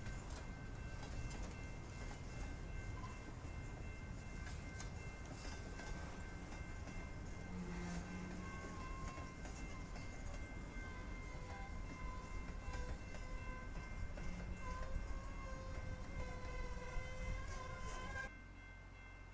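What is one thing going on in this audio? Train wheels squeal and screech on the rails.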